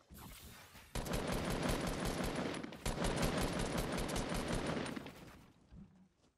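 An automatic rifle fires rapid bursts in a video game.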